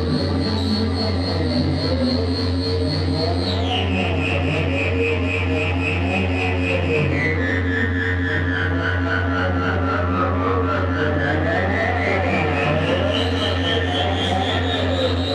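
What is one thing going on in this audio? An electronic instrument plays a loud, steady, buzzing drone with a high tone that slowly slides down and back up.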